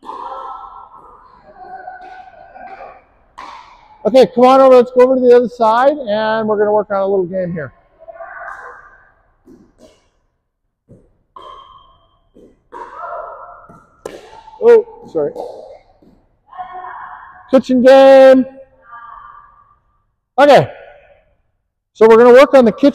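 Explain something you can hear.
Paddles pop as they strike a plastic ball back and forth, echoing in a large hall.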